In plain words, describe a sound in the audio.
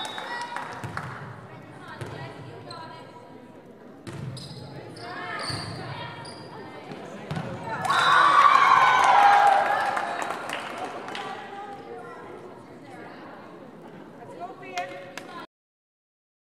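A volleyball is struck with sharp slaps in an echoing gym.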